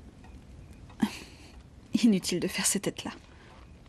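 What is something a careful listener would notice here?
A second young woman speaks softly, close by.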